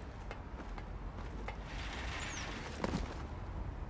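Boots clang on a metal ladder.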